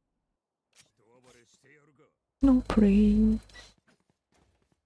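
A young man speaks loudly into a microphone.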